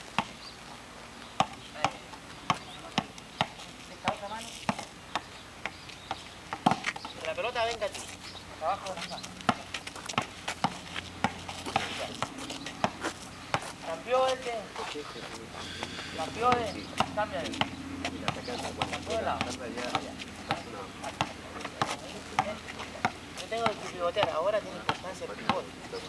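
A basketball bounces sharply on a hard court.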